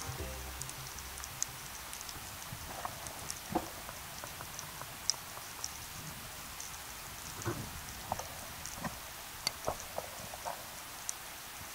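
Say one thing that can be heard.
A steady muffled underwater hush surrounds the listener.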